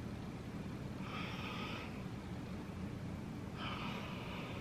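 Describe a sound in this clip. A young woman sniffs deeply.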